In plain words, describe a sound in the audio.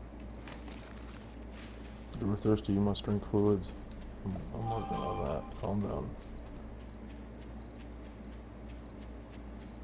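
Footsteps rustle through dry grass at a steady walking pace.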